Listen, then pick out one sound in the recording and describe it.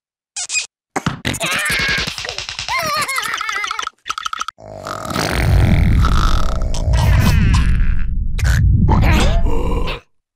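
A cartoon creature yelps and babbles excitedly in a high voice.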